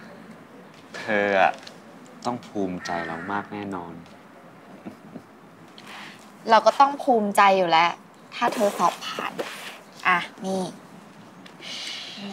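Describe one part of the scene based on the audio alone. A young man speaks softly and close by.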